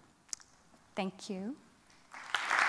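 A young woman speaks briefly through a microphone.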